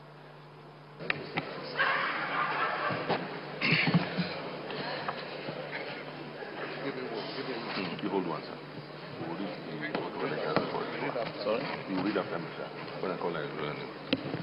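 A crowd murmurs and chatters in a large hall.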